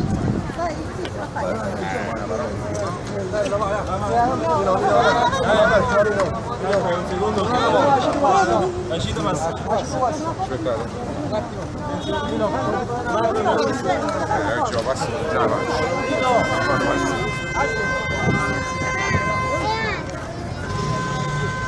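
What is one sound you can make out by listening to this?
A crowd of men and women talk over each other close by, outdoors.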